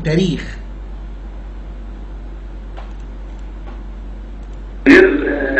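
A man speaks in short bursts through a broadcast microphone.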